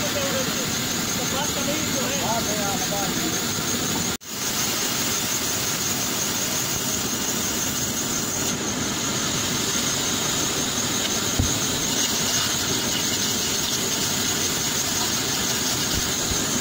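A band saw blade rasps through wood.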